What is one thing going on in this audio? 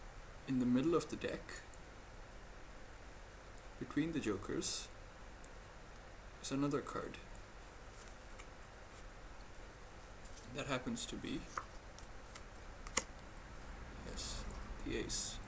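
Playing cards are spread and handled on a cloth mat.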